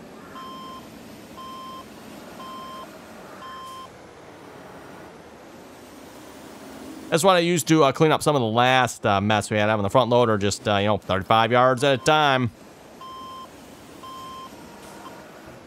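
A loader's reversing alarm beeps in an even rhythm.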